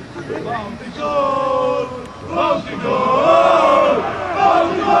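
Men shout loudly to each other across an open outdoor field.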